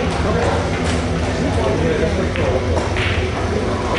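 A cue tip strikes a pool ball.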